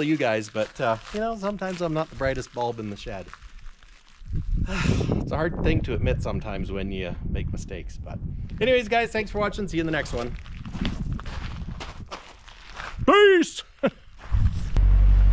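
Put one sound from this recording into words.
A middle-aged man talks with animation close by.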